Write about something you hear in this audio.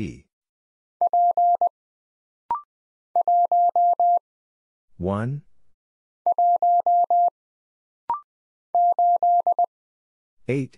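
A telegraph key beeps out Morse code in quick short and long tones.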